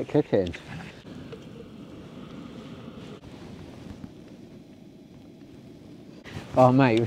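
A gas stove burner hisses steadily.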